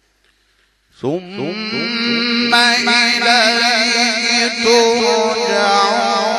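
A man chants loudly and melodically into a microphone, with long held notes.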